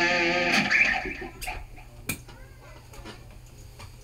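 An electric guitar chord rings out close by and slowly fades.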